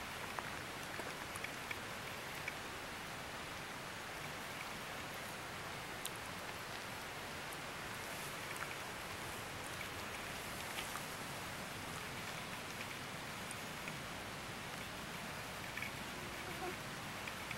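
A small animal scurries lightly across wooden boards.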